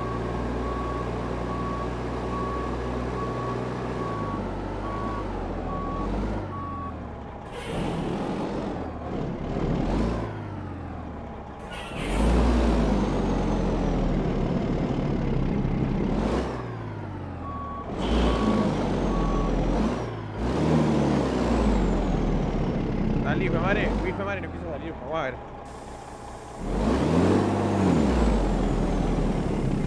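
A truck engine idles and rumbles steadily.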